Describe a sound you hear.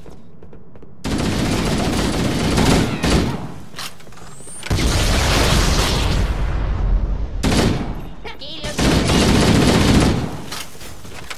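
A rifle fires rapid bursts of gunfire.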